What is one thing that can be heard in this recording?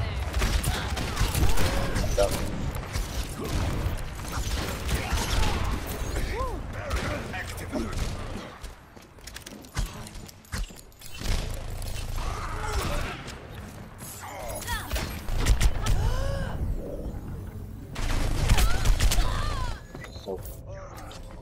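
Gunshots from a game fire in rapid bursts.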